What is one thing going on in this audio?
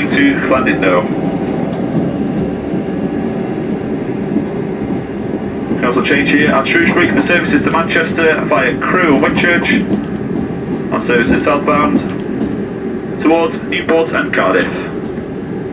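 A man talks quietly close by, in short bursts.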